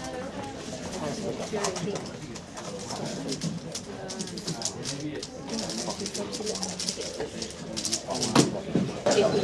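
A puzzle cube clicks rapidly as it is turned by hand.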